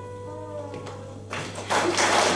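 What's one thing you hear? A choir sings a held final note in a large echoing hall.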